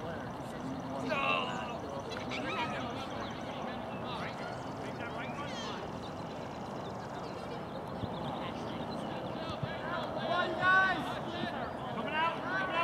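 Children call out to each other across an open field.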